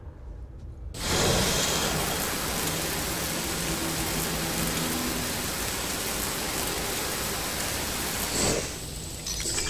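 A cutting torch hisses loudly and steadily.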